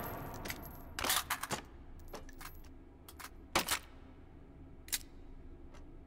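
Metal parts of a rifle click and clack as it is handled.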